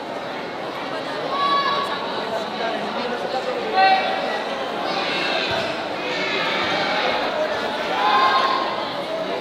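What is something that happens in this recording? A large crowd chatters and cheers loudly in an echoing hall.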